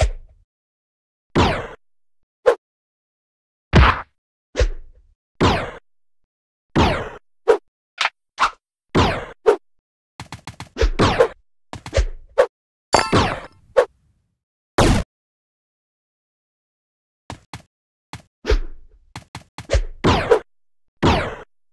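Short, sharp game sound effects pop and thud again and again.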